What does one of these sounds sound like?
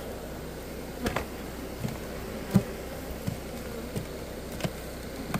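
A bee smoker's bellows puffs air in short bursts.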